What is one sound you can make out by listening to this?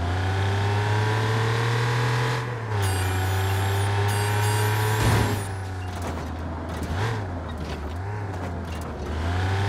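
A car engine hums steadily and its pitch dips and rises as it shifts gears.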